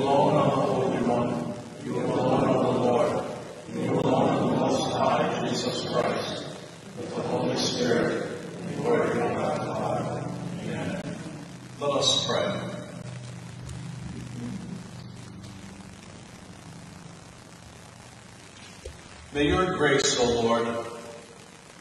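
An elderly man speaks calmly through a microphone in a large echoing hall.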